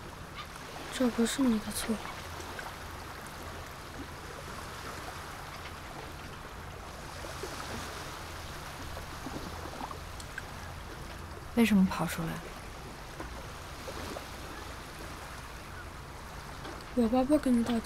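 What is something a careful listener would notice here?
A child speaks softly and briefly, close by.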